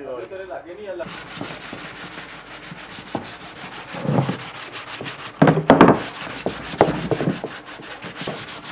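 Sandpaper scrapes and rubs against a hard hollow shell.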